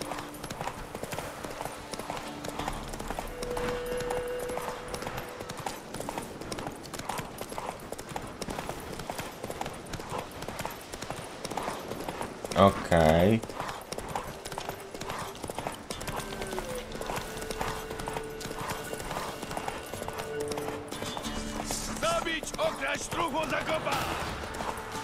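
A horse's hooves thud at a gallop.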